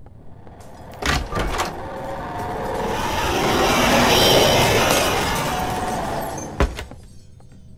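A wooden door clicks and creaks open.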